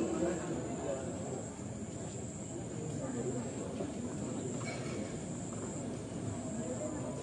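A woman speaks steadily through a microphone and loudspeakers in an echoing hall.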